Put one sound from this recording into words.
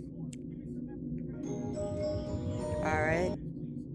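A music box plays a tinkling tune.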